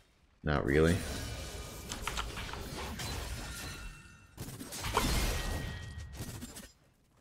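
Video game battle effects whoosh and clash.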